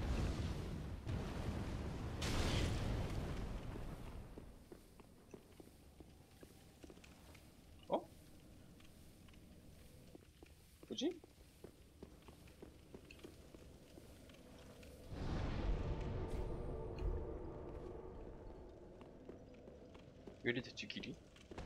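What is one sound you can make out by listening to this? Footsteps clank on stone.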